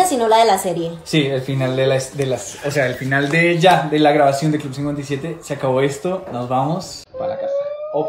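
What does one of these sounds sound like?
A young man talks with animation close to a phone microphone.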